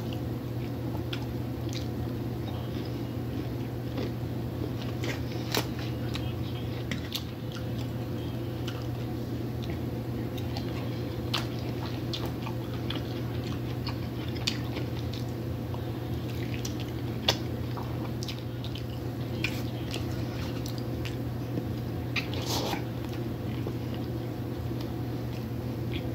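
A woman chews food wetly, close to a microphone.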